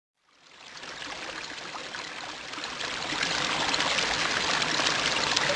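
Liquid trickles and fizzes, slowly growing louder.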